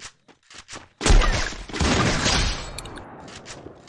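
A rifle shot booms, followed by a rumbling echo.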